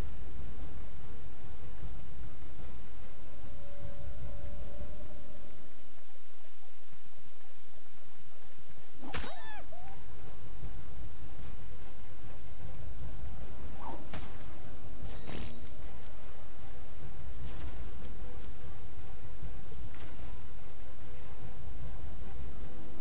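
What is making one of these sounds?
Blows thud against an animal.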